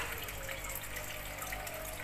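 Air bubbles gurgle in water.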